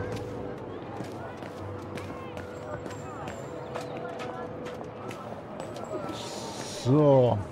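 Footsteps tap on stone pavement.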